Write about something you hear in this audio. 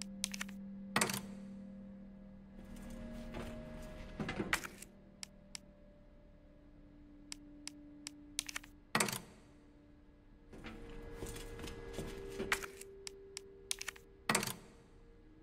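A plug clicks sharply into a socket.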